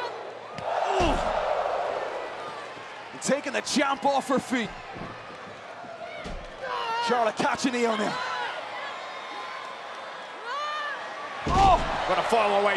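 A body slams down hard onto a wrestling mat with a heavy thud.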